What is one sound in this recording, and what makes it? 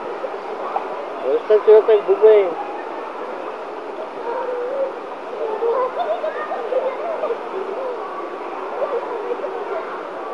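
Water jets churn and bubble steadily.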